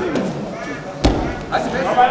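A body thuds onto a mat.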